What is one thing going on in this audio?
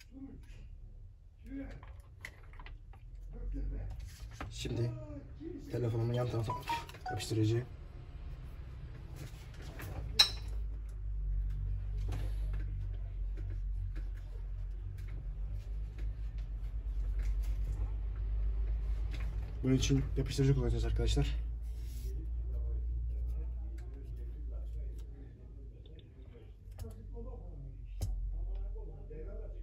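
Plastic phone parts click and tap as they are handled.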